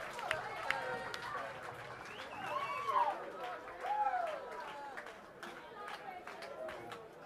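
Drums and cymbals crash in a loud live band.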